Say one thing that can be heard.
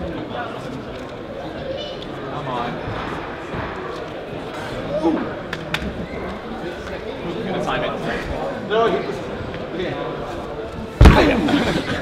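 Young men talk and call out encouragement nearby.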